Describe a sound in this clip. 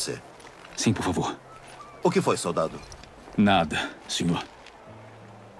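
A man speaks quietly and hesitantly.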